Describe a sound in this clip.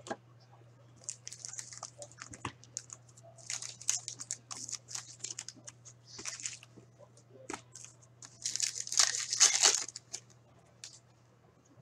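Cards rustle and slide against each other as they are handled.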